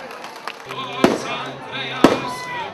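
Fireworks pop and crackle outdoors.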